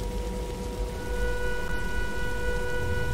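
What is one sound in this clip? A jet engine whines louder as it spools up.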